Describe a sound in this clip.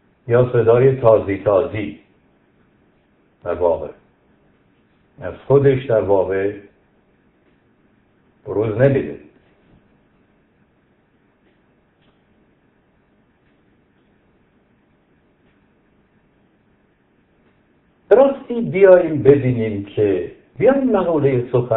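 A middle-aged man speaks calmly into a microphone, pausing often.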